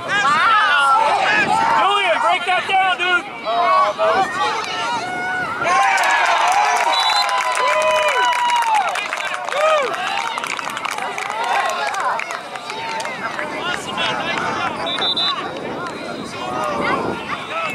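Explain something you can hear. A crowd of children and adults shouts and cheers outdoors.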